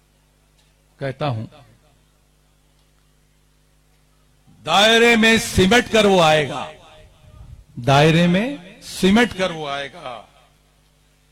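A middle-aged man speaks forcefully into a microphone over a loudspeaker, with pauses.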